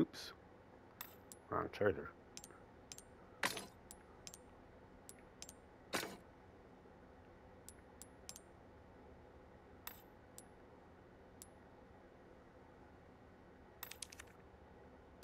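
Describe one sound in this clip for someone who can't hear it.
Short, high menu blips and clicks sound as selections change.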